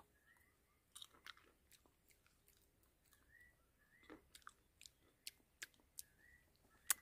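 A man chews and smacks his lips.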